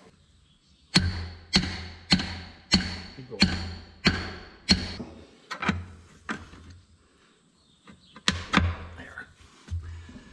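Metal strikes a wheel rim in a steady series of ringing knocks.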